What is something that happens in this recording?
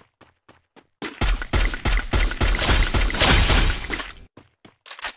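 Gunshots crack in quick succession.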